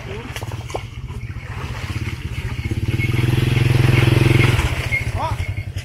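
Water splashes as people wade and scoop through a shallow muddy stream.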